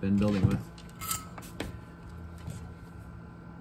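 Small metal tools tap and click against a work surface.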